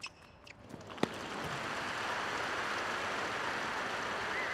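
A large crowd applauds and cheers loudly.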